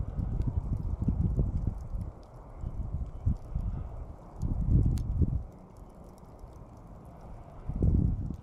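Glowing embers crackle and pop softly.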